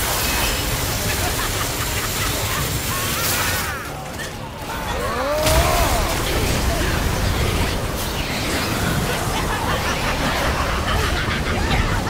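Icy blasts whoosh and crack.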